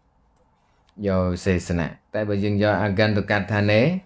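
A man speaks calmly and steadily into a close microphone.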